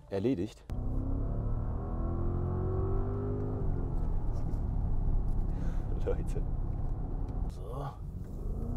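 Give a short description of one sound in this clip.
A car engine hums low and steady from inside the car, rising in pitch as the car speeds up.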